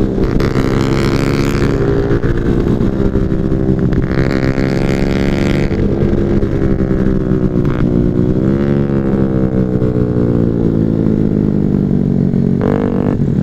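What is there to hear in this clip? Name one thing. A scooter engine hums steadily up close, rising and falling in pitch.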